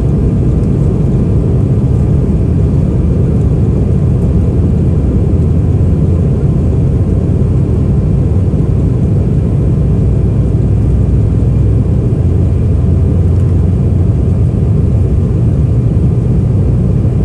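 Airliner wheels rumble over the runway.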